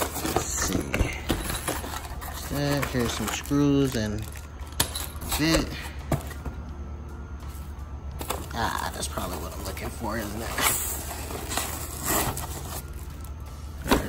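Foam packing blocks rub and squeak as they are pulled out.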